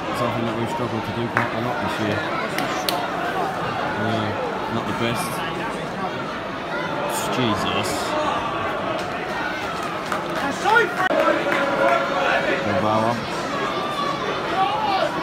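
A large crowd chatters and calls out in an open stadium.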